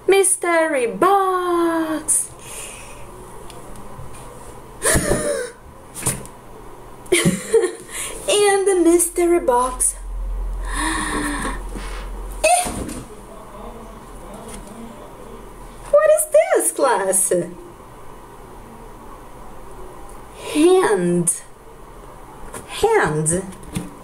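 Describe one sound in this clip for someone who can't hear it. A young woman speaks animatedly and calls out close by.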